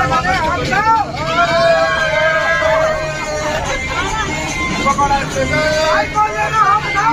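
A group of men and women sing together cheerfully close by.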